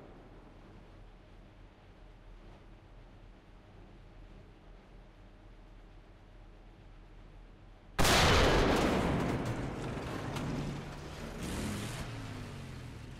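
A tank engine idles with a low, steady rumble.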